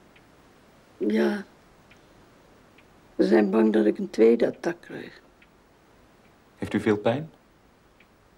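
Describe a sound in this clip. An elderly woman speaks weakly and slowly nearby.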